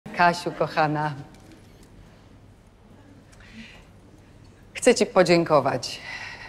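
A middle-aged woman speaks clearly and warmly, close by, with pauses between phrases.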